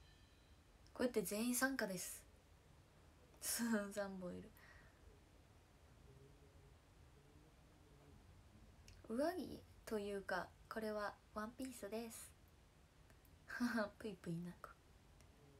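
A young woman talks close to the microphone, calmly and in short bursts.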